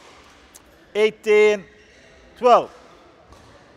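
Sports shoes squeak loudly on the court floor.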